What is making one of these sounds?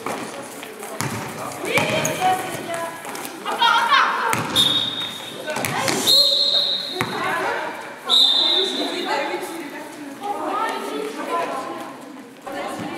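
Young women shout to each other in a large echoing hall.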